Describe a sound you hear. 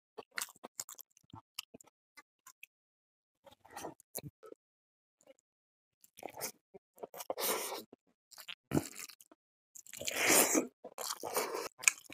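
Fingers squelch and mix rice on a metal plate.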